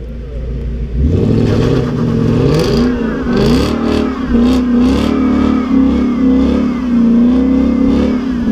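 A sports car engine revs hard and roars loudly.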